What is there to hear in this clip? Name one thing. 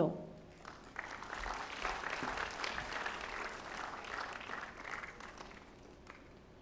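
An audience applauds.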